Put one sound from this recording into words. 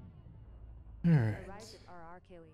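A spaceship drops out of a jump with a sudden deep whoosh.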